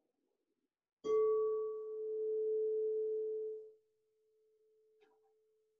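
A crystal singing bowl is struck and rings with a steady tone that slowly fades.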